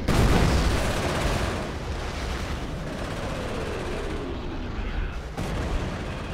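Tank engines rumble and clank.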